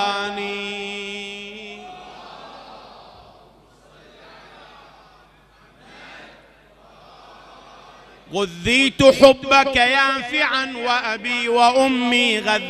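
A man chants and speaks loudly through a microphone, with a long echo.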